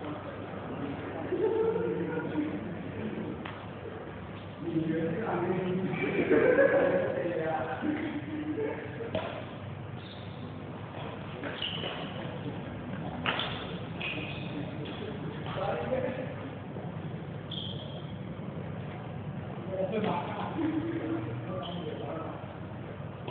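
Young people talk at a distance in a large echoing hall.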